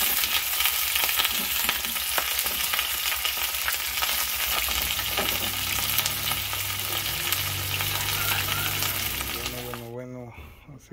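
Shrimp sizzle and crackle loudly in a hot frying pan.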